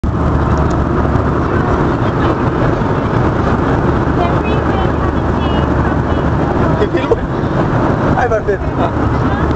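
A steady loud roar of an airplane cabin fills the air.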